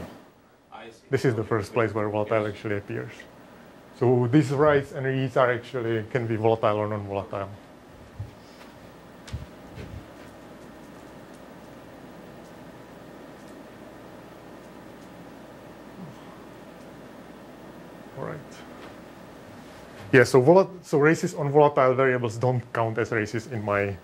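A man lectures into a microphone in a calm, steady voice, with pauses.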